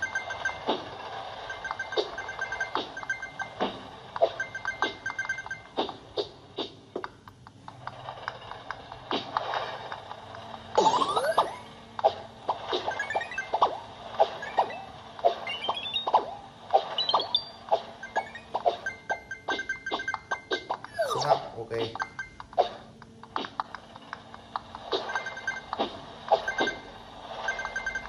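Game music plays from a tablet speaker.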